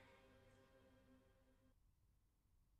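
A young woman sings softly and close by.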